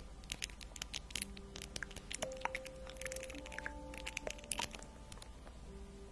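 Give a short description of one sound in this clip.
A pen taps and clicks sharply against a notebook.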